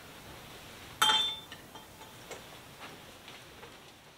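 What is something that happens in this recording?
Objects knock and clink against a wooden surface close by.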